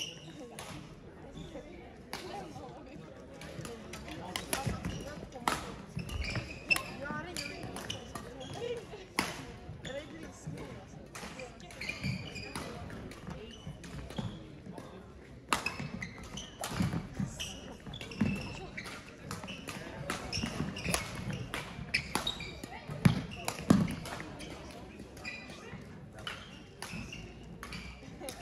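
Shuttlecocks are struck sharply with rackets again and again in a large echoing hall.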